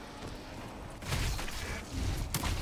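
A creature is struck with rough, crunching blows.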